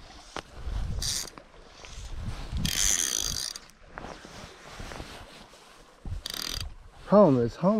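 A fly reel clicks and buzzes as line is pulled off it.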